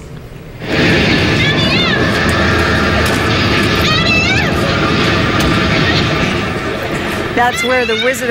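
Orchestral film music plays loudly over outdoor loudspeakers.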